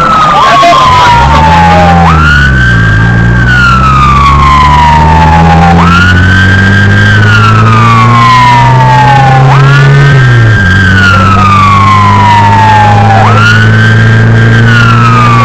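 A car engine hums and drones while driving.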